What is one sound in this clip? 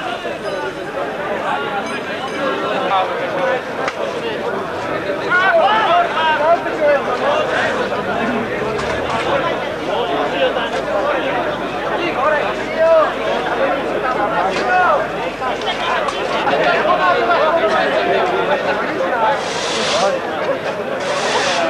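A crowd of adults chatters and talks loudly outdoors.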